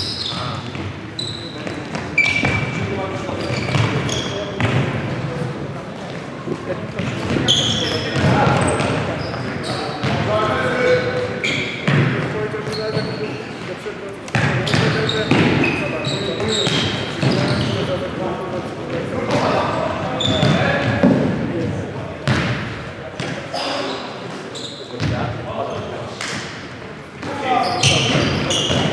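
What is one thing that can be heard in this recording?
Sneakers squeak sharply on a wooden court in a large echoing hall.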